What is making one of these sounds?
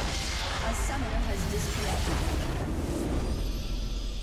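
A game's magic blasts burst and crackle.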